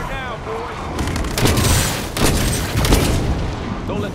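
A rifle fires bursts of shots.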